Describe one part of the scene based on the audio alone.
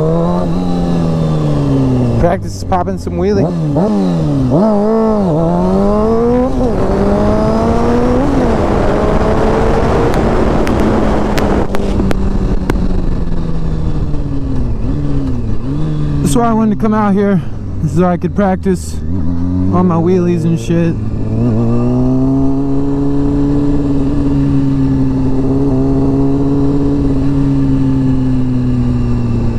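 A motorcycle engine roars close by, revving up and down through the gears.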